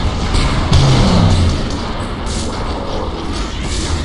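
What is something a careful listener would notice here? A laser beam fires with a sharp buzzing hum.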